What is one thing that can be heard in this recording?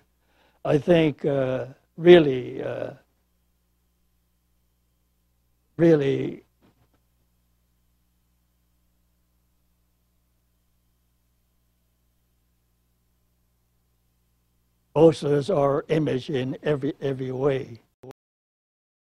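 An elderly man speaks slowly and haltingly into a microphone.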